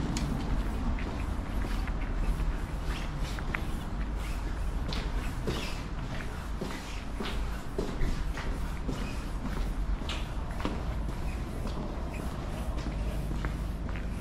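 Footsteps walk steadily on a paved path.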